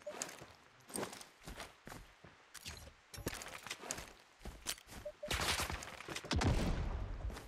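Soft interface clicks sound as menu items are picked.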